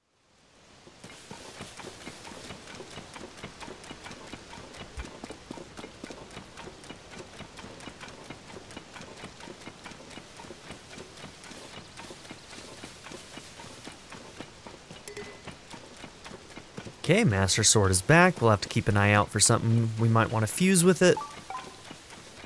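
Rain falls steadily on grass.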